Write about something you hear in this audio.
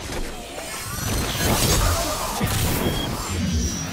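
Electric blasts crackle and zap.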